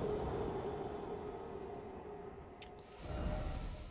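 A deep rumbling drone fills the air.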